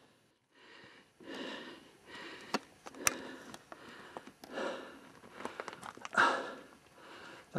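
Footsteps crunch on loose stones along a rocky path.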